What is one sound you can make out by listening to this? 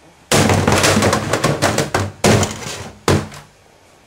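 Boxing gloves thump against a game console.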